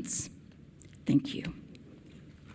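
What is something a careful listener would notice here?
A woman speaks briefly into a microphone in a calm voice.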